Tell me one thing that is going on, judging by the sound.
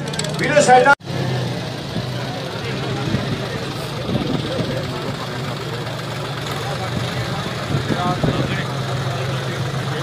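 Tractor engines roar and strain.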